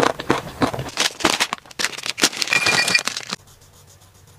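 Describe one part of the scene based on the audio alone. A plastic wrapper crinkles as it is torn open.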